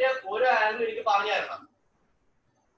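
Children talk loudly over an online call.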